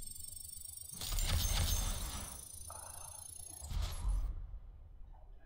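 Bright electronic chimes ring out in quick succession.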